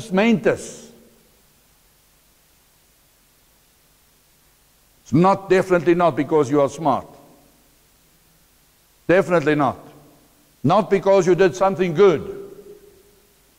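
A middle-aged man speaks calmly into a clip-on microphone, in short phrases with pauses.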